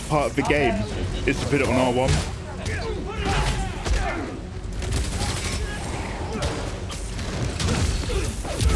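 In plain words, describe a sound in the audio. Gunfire and impacts crackle.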